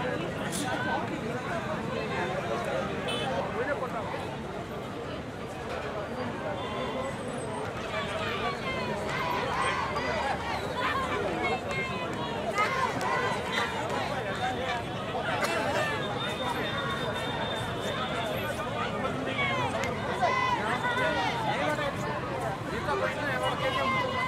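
A large crowd of men talks and shouts at once outdoors, close by.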